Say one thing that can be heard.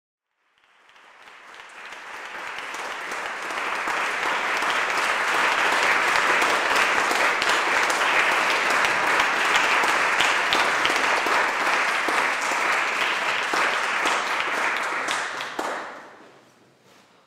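An audience applauds loudly in an echoing hall, then the applause dies away.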